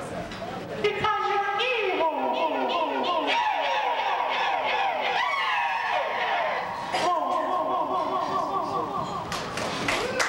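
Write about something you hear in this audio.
A man sings with wavering, sliding pitch through a microphone.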